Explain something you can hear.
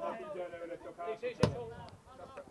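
A football thumps as a player kicks it.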